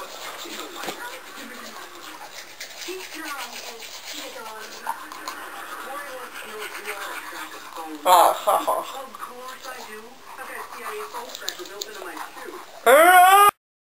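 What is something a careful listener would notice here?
A young girl talks close by, her speech muffled by a toothbrush.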